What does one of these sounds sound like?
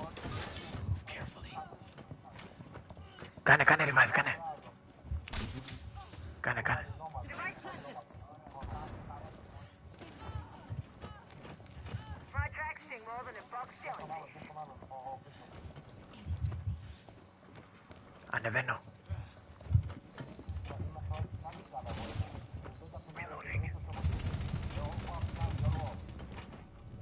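A man talks into a close microphone, with animation.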